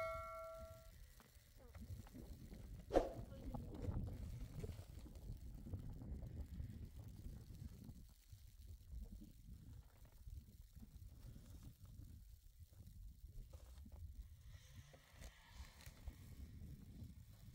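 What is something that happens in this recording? A wooden pole scrapes and pushes through snow.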